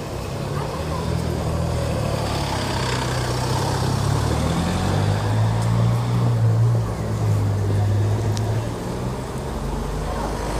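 A vehicle engine idles nearby with a low, steady hum.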